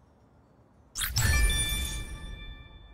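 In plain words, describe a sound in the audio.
A bright game alert chimes loudly and rings out.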